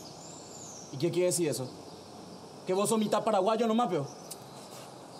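A young man answers with animation nearby.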